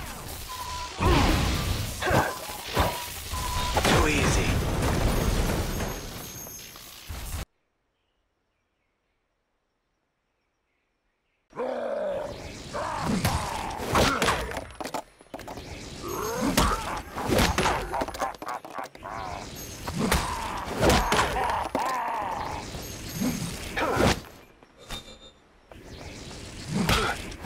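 Blaster shots fire and explosions boom in quick bursts.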